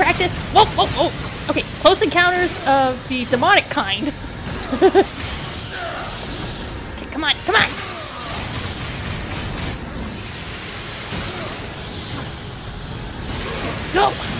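Crackling electric magic bursts and fizzes.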